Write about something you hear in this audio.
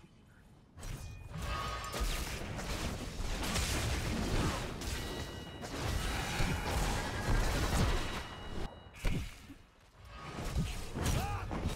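Magic blasts whoosh and crackle in a fast fight.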